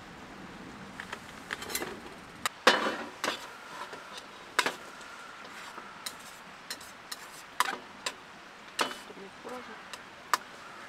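Chopsticks clink and tap against a metal pan.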